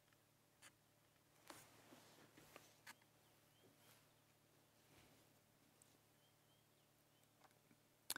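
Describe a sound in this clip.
An animal's footsteps rustle softly through dry leaves.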